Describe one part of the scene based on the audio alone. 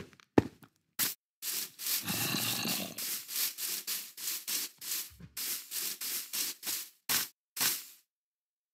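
Footsteps thud across grass.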